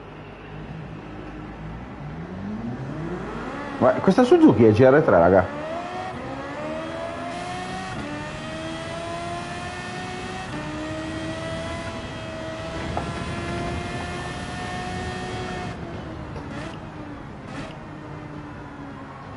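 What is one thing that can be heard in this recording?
A racing car engine revs up and roars as it speeds through the gears.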